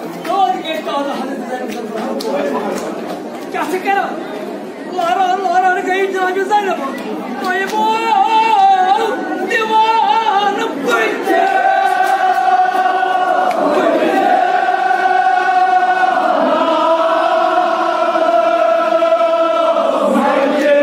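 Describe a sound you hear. An elderly man chants loudly in a sung, drawn-out voice through a loudspeaker in an echoing hall.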